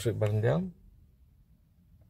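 A button clicks as a finger presses it.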